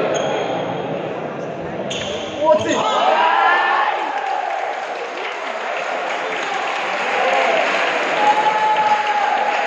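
Sports shoes squeak on a wooden court.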